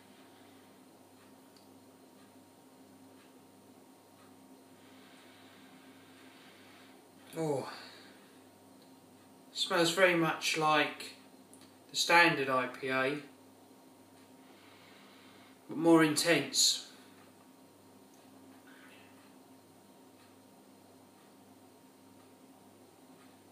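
A man sips a drink.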